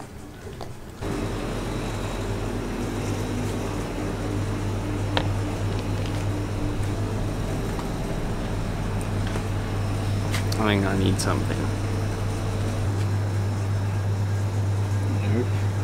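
Refrigerators hum steadily indoors.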